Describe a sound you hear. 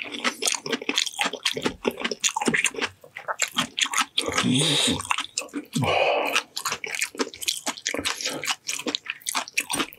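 Sticky food squelches and tears between fingers close to a microphone.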